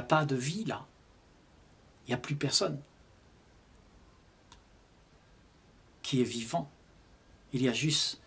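An elderly man speaks calmly and slowly close to a microphone, with long pauses.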